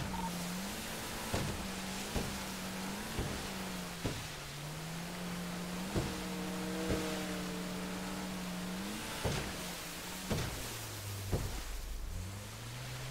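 A boat engine drones steadily, rising and falling in pitch.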